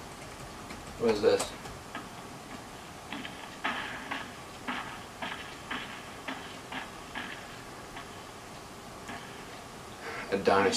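A young man speaks briefly, close by.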